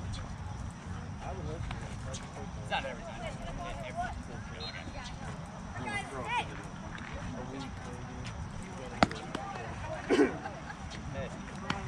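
Young players and adults call out from a distance across an open field.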